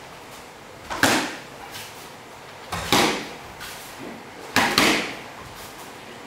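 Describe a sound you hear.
Punches and kicks thud against padding in an echoing hall.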